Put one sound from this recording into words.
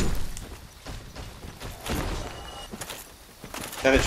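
A heavy armoured body crashes to the ground.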